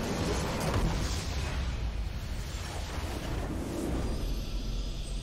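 A game structure explodes with a loud, rumbling blast.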